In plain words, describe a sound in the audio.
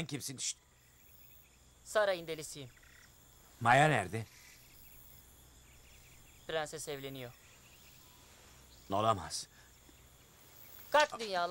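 A young man speaks anxiously, close by.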